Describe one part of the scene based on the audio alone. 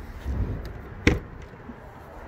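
A vehicle door latch clicks open.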